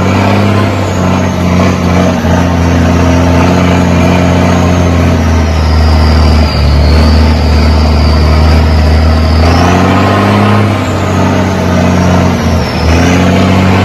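A heavy truck engine roars loudly up close and changes pitch.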